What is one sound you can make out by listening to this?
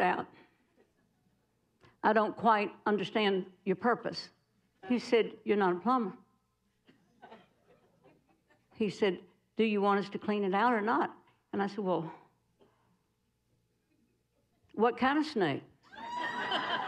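An older woman speaks expressively into a microphone, with pauses between phrases.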